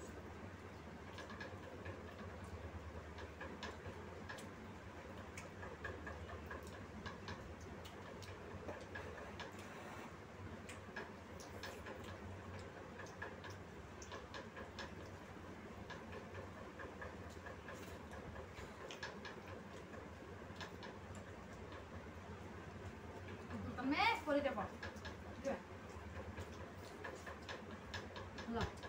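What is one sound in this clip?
Steel plates and bowls clink softly.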